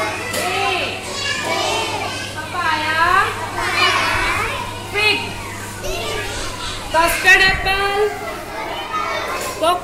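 A woman speaks with animation close by, explaining in a lively, sing-song voice.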